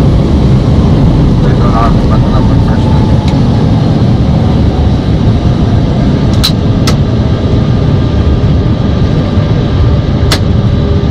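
Jet engines roar steadily as an airliner rolls down a runway.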